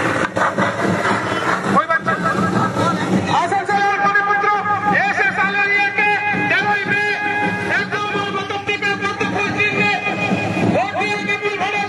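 Music with singing blares loudly from loudspeakers outdoors.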